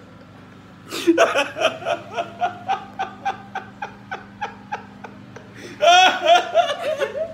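A young woman laughs, close by.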